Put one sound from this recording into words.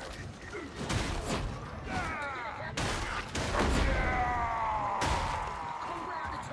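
Heavy blows and gunfire crash and thud in quick bursts.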